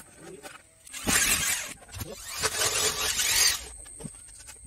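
A power tool whirs in short bursts.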